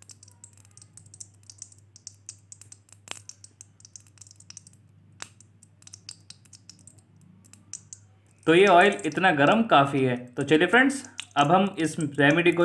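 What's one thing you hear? Fingers swish and stir water in a metal bowl.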